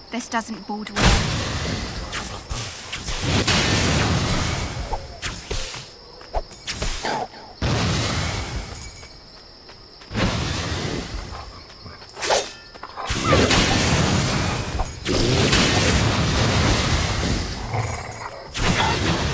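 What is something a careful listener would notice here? Magic blasts whoosh and crackle in loud bursts.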